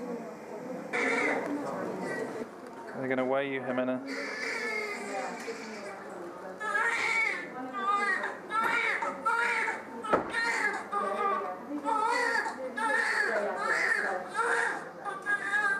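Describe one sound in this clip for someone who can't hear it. A newborn baby cries loudly in short bursts.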